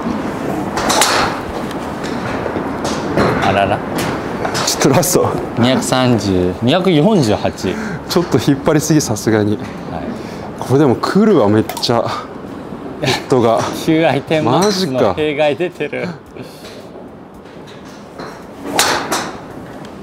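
A golf club strikes a ball with a sharp crack.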